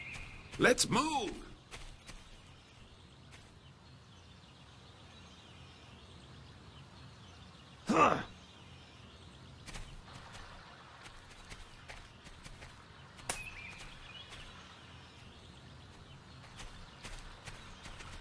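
Heavy footsteps tread on grass and dirt.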